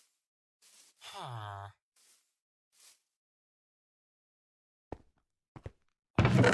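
A pickaxe chips at stone.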